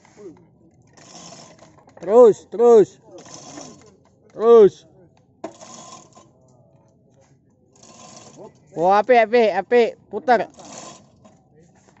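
A chain hoist rattles and clinks.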